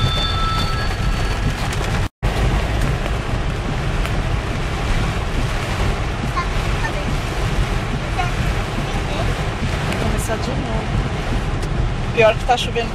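Heavy rain pounds on a car windshield.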